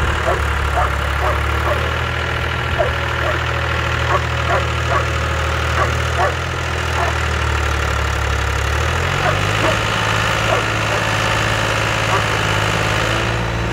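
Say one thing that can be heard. A tractor engine idles and rumbles steadily nearby.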